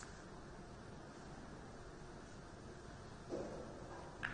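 A cue strikes a billiard ball.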